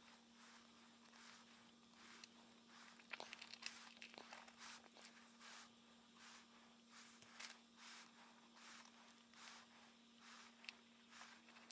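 A wooden stick scrapes softly against paper.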